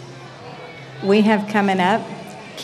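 A woman calls out loudly nearby outdoors.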